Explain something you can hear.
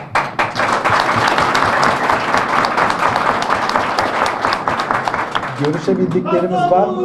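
Many people clap loudly.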